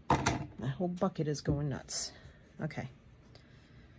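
Metal pliers clink down onto a table.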